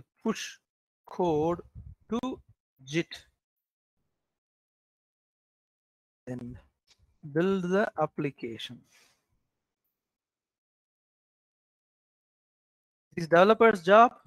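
A man talks calmly through a microphone, in short bursts with pauses.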